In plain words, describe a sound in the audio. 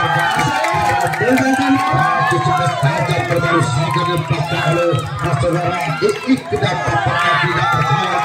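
A large crowd of spectators cheers and shouts outdoors.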